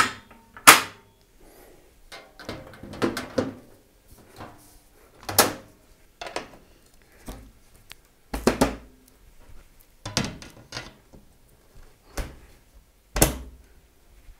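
Glass and metal panels knock and click against a metal case.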